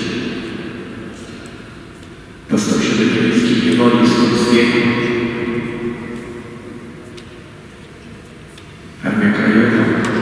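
An elderly man speaks slowly and solemnly through a microphone in a large echoing hall.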